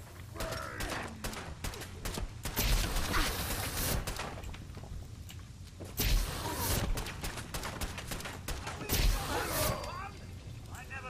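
Gunshots and explosions boom rapidly and loudly.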